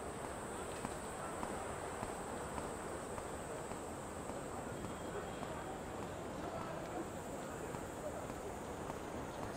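Footsteps tap on pavement at a steady walking pace.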